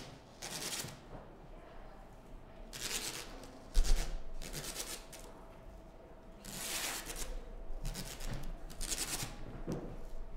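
Adhesive tape rips loudly as it is pulled off a roll in short bursts.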